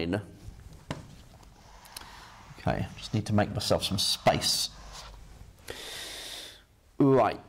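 A man talks calmly, explaining, close by.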